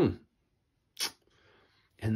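A folding knife blade snaps shut with a sharp click.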